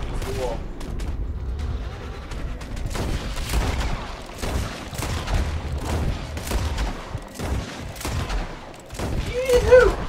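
Gunshots crack repeatedly at close range.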